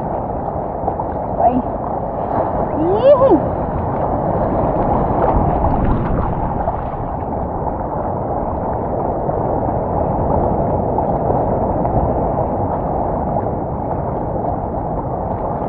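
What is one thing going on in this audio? Ocean water sloshes and laps close by.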